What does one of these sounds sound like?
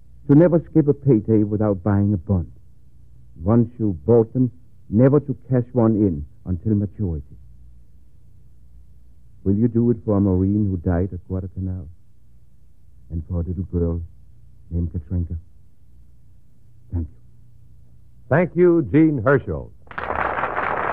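A man speaks slowly and deliberately.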